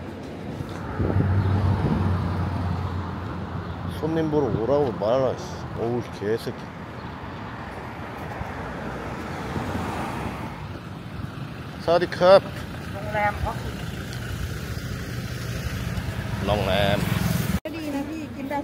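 Traffic rumbles past along a street outdoors.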